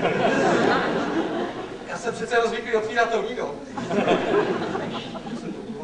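A man laughs heartily.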